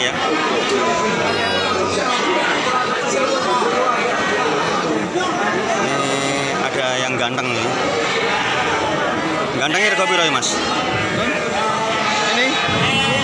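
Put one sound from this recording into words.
A crowd of men talk and call out around the animals.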